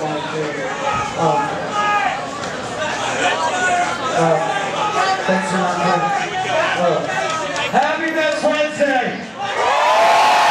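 A man shouts into a microphone over loudspeakers.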